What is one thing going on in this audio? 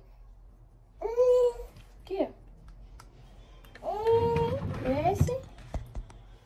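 A baby squeals and babbles.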